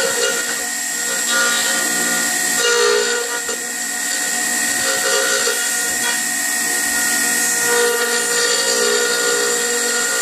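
A router bit cuts through wood with a rough grinding hiss.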